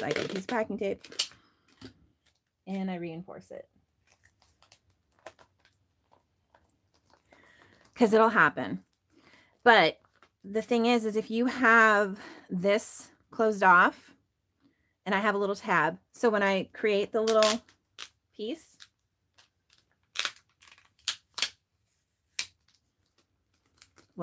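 Plastic sleeves crinkle and rustle as they are handled.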